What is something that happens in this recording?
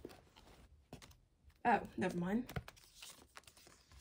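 A card box lid opens with a soft scrape.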